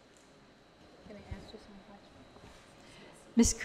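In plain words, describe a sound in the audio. A woman speaks quietly into a microphone.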